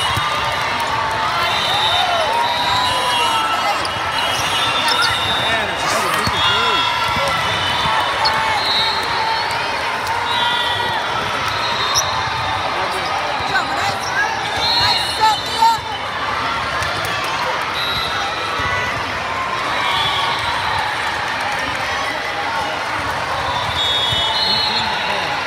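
A crowd of voices chatters and calls out throughout a large echoing gym.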